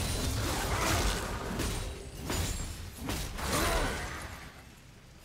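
Magic spells crackle and whoosh during a fight.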